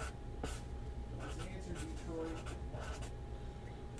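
A marker squeaks as it writes on cardboard.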